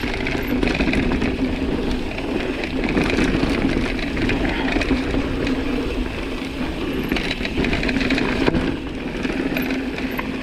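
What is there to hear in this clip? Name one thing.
A bicycle rattles over bumps.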